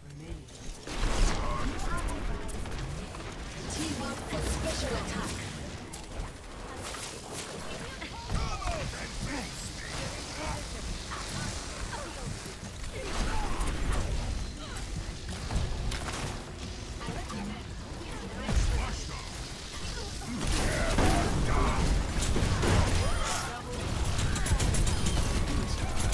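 Gunfire and laser beams crackle and zap in quick bursts.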